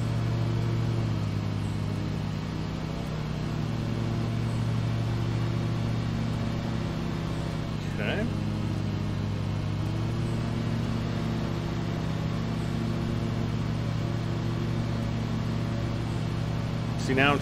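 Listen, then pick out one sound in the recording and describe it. A mower engine hums steadily.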